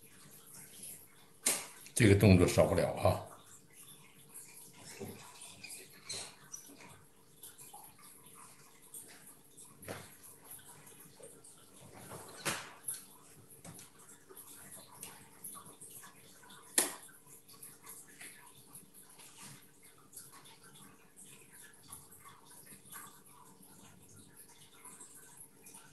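A brush softly dabs and strokes on paper.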